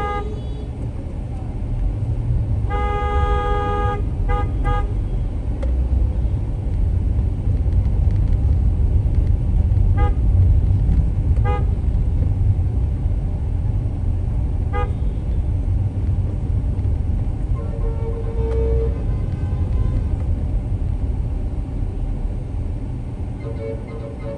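A car engine rumbles low and steady while driving through traffic.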